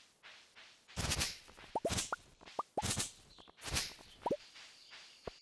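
Grass and weeds rustle and snap as they are cut.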